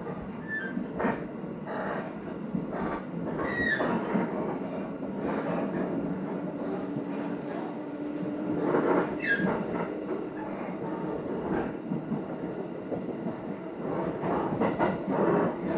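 Train wheels clatter and squeal over rail joints.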